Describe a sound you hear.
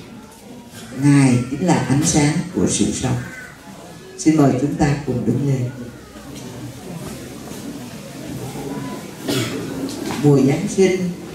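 An elderly woman speaks through a microphone and loudspeakers, in pauses and with feeling.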